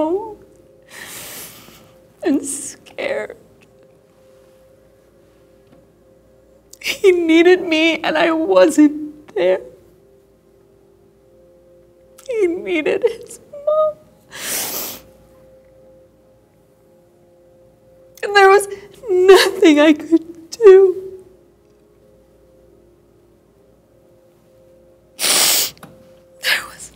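A middle-aged woman sighs and breathes out heavily.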